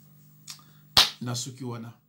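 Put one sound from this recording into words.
A man claps his hands once.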